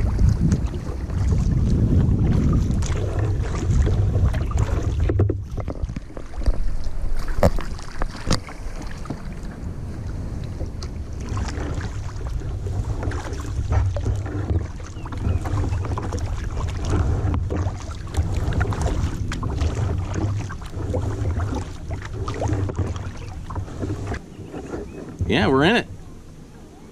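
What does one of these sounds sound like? Wind rumbles and buffets outdoors on open water.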